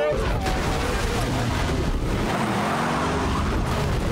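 A monster truck engine roars.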